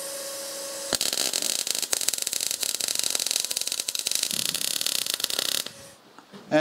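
A welder crackles and sizzles loudly.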